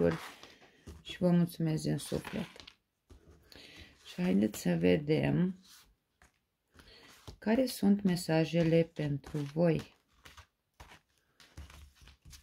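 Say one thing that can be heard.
Playing cards are laid down one by one with soft slaps and shuffling rustles.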